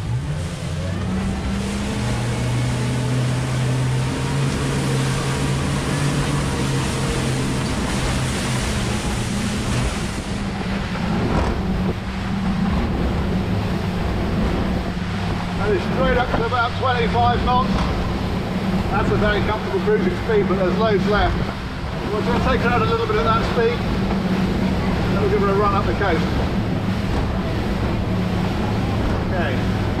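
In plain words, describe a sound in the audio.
Water rushes and splashes in a boat's wake.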